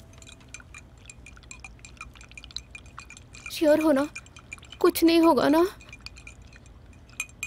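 A spoon clinks and stirs against a glass.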